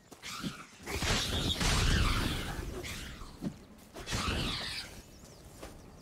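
A dark cloud bursts with a loud rushing whoosh.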